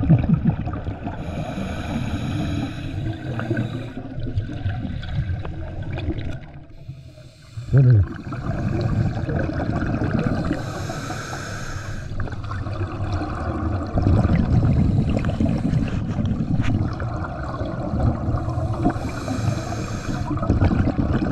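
Scuba regulator bubbles burst out in loud gurgling rushes.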